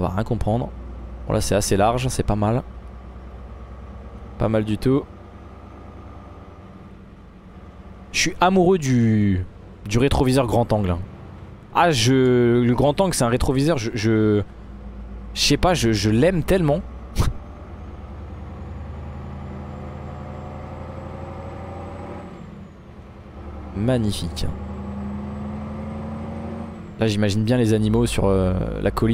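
A truck engine hums steadily inside the cab.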